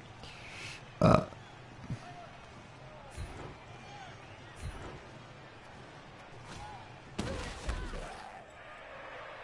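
Heavy thuds and crashes sound as armoured players collide.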